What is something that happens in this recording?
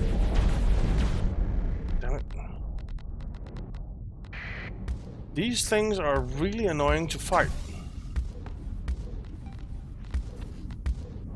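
Laser weapons fire with sharp electronic zaps.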